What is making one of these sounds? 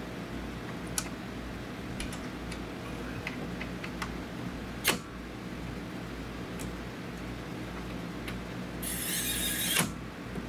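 Metal tools clink and tap against engine parts.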